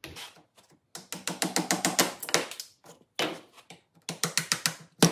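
A mallet taps a chisel in quick repeated blows.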